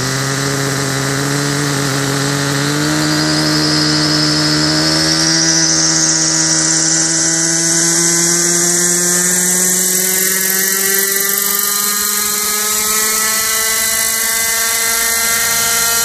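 Rotor blades whir and blow dust.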